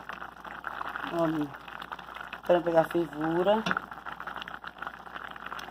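A pot of thick liquid bubbles and pops as it boils.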